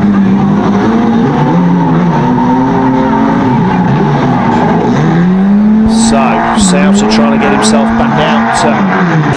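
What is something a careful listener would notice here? Several car engines roar and rev loudly.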